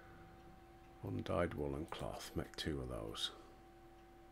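A middle-aged man speaks briefly and calmly into a microphone.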